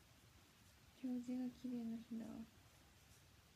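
A young woman speaks briefly and softly, close to a microphone.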